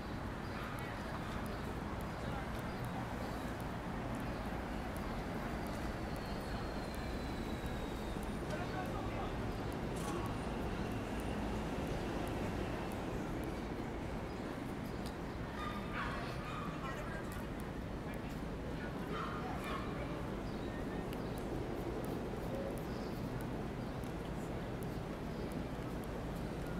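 Footsteps tap on the pavement.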